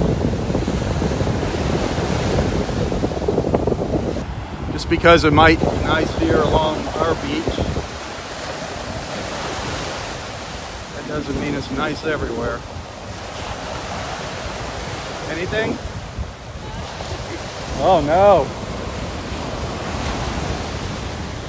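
Waves break and wash up onto the shore.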